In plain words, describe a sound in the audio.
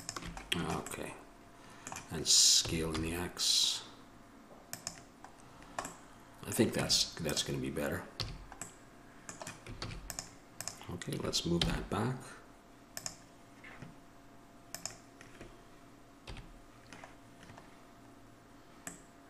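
A computer mouse and keyboard click now and then.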